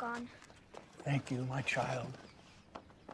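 An elderly man speaks warmly, close by.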